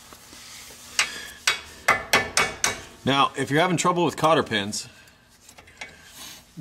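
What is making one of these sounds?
Pliers click and snap against a small metal clip.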